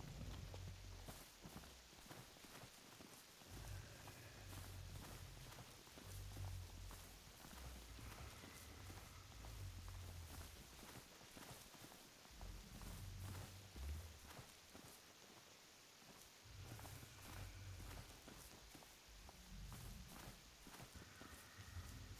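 Footsteps rustle softly through grass.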